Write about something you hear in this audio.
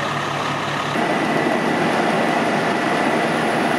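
Water sprays from a fire hose with a loud rushing hiss.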